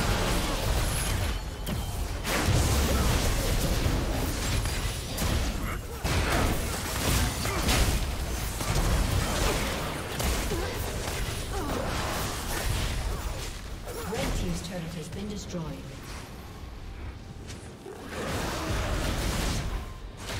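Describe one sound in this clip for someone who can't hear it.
Magic spells whoosh and crackle in quick bursts.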